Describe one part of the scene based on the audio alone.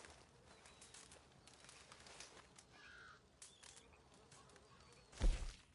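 A campfire crackles and pops close by.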